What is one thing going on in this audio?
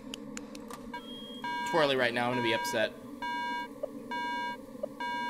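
Electronic beeps sound in a steady pattern.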